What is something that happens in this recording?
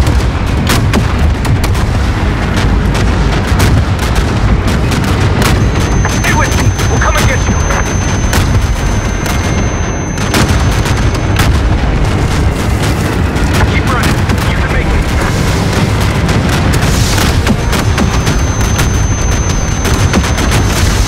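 Explosions boom and rumble all around.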